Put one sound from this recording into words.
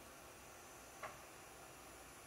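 A small plastic button clicks once.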